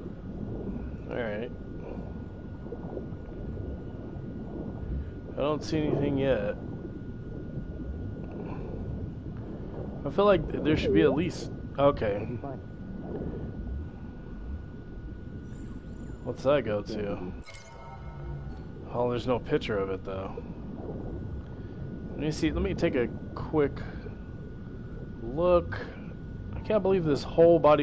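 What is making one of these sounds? A young man talks casually into a close microphone.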